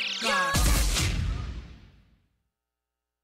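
Loud music ends on a final crash that rings out in a large echoing hall.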